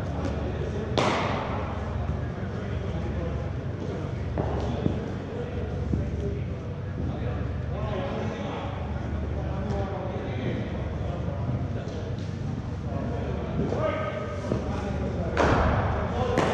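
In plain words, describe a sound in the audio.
A cricket ball cracks off a bat in a large echoing hall.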